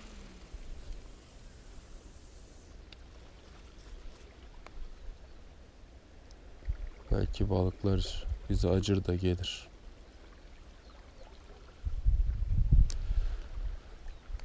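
A fishing reel whirs as its line is wound in.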